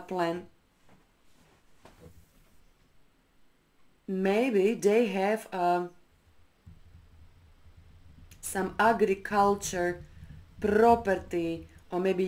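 An older woman speaks calmly and clearly into a close microphone.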